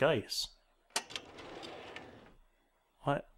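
A heavy metal door slides open with a low rumble.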